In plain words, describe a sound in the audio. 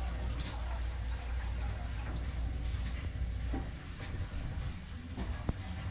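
A man handles something, making small clicks and knocks.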